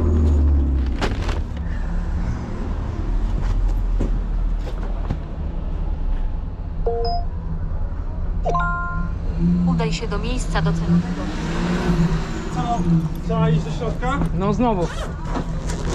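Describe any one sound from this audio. A delivery bag rustles and bumps as it is handled.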